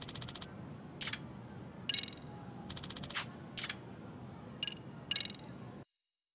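Short electronic menu beeps sound several times.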